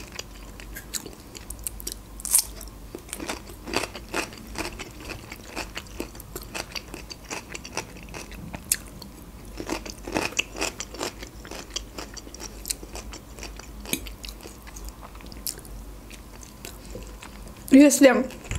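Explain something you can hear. A young woman chews food wetly and crunchily close to a microphone.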